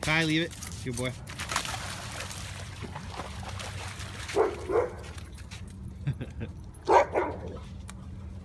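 A dog barks sharply outdoors.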